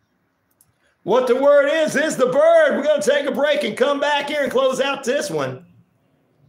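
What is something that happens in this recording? A man speaks loudly and with animation, close to a microphone.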